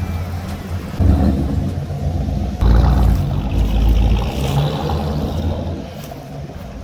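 A car's engine roars loudly as it pulls away and accelerates.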